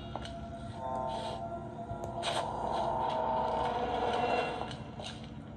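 A wooden drawer slides open, heard through a small tablet speaker.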